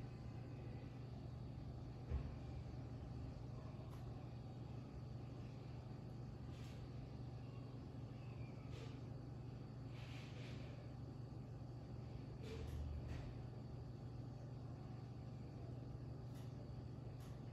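A ceiling fan whirs and hums steadily.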